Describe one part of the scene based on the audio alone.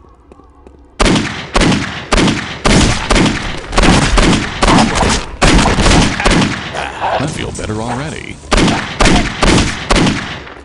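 A pistol fires shot after shot in quick succession, each shot echoing.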